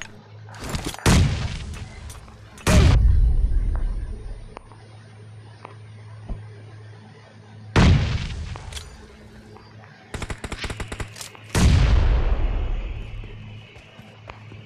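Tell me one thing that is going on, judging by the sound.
Loud explosions boom and rumble away.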